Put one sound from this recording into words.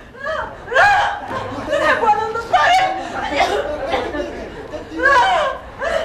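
A woman cries out loudly.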